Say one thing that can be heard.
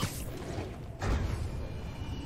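A heavy thud sounds as something lands on the ground.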